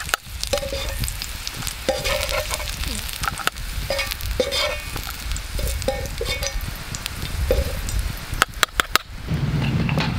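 Garlic sizzles and crackles in a hot pan.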